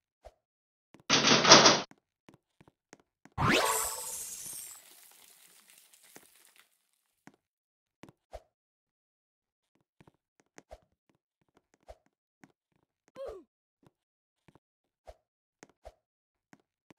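Soft short thuds sound now and then as a game character jumps.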